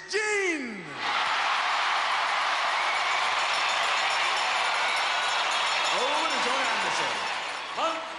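A large crowd cheers loudly in a big echoing arena.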